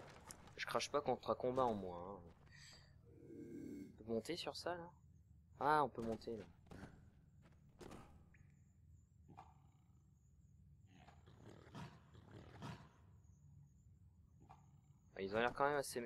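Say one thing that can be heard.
Footsteps thud softly on stone and wooden boards.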